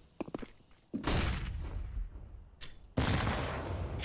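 A grenade goes off with a loud bang, then a high ringing hiss slowly fades.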